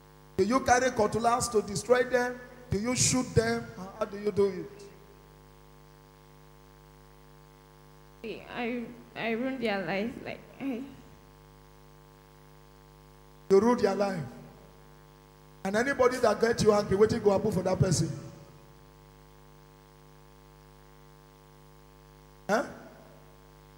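A man speaks with animation through a microphone in a room with some echo.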